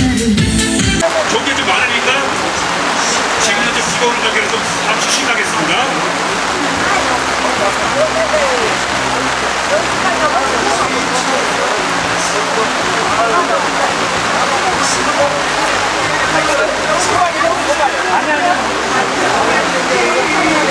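A crowd of elderly men and women chat nearby outdoors.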